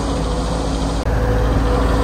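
Soil and stones pour and rattle from a digger bucket.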